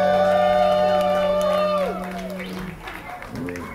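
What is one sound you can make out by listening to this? A band plays a loud chord that rings out and stops.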